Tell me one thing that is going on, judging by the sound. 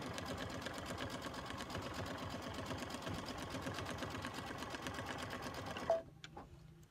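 An embroidery machine stitches with a fast, steady whirring and tapping.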